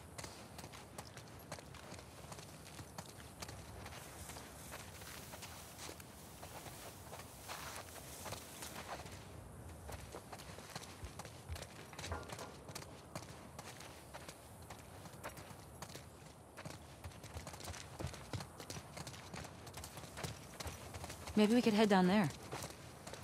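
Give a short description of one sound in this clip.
Footsteps tread steadily over wet ground.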